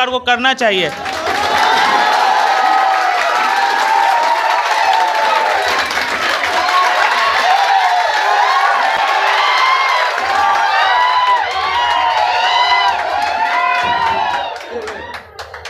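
A large crowd of young people cheers and whistles loudly in an echoing hall.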